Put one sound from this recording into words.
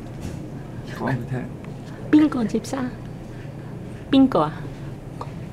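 An elderly woman speaks in a frail voice close by.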